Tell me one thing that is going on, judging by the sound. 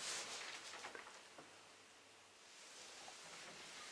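Book pages rustle as a man turns them.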